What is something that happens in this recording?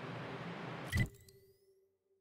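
A short click sounds as a menu opens.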